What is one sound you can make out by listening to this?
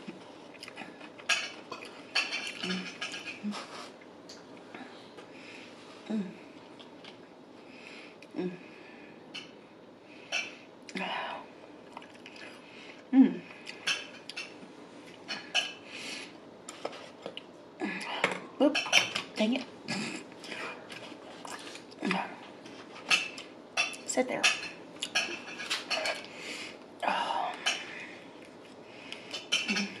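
A woman chews food wetly and noisily, close to a microphone.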